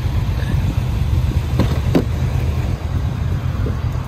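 A car door unlatches and swings open.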